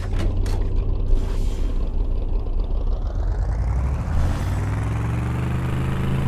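A vehicle engine rumbles steadily and rises in pitch toward the end.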